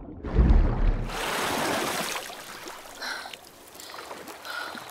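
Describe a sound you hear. Footsteps splash through shallow water in an echoing cave.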